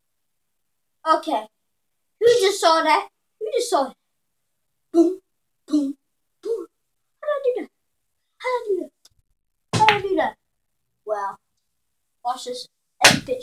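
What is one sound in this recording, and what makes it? A young boy talks with animation close by, in short bursts.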